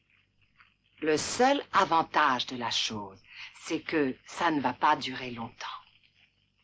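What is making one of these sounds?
A middle-aged woman speaks with feeling, close by.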